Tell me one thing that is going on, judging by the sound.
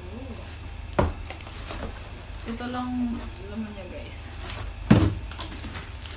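A cardboard box thumps and scrapes.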